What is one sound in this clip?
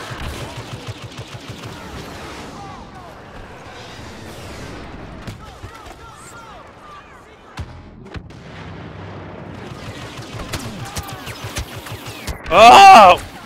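Blaster rifles fire in rapid bursts of sharp shots.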